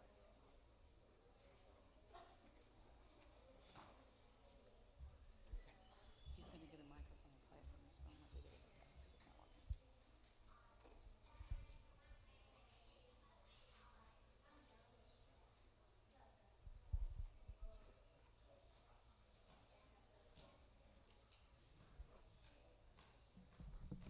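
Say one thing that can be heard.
Adults and children talk quietly and murmur in a large echoing hall.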